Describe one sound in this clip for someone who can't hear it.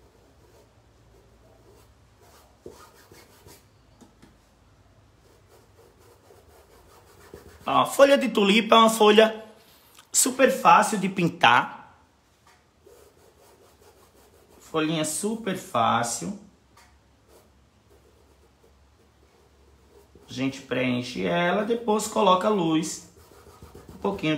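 A paintbrush strokes softly across cloth.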